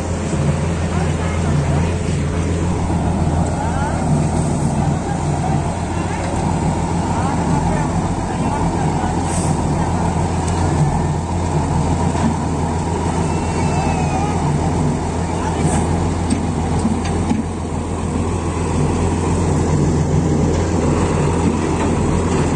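A diesel road roller's engine rumbles as it rolls forward.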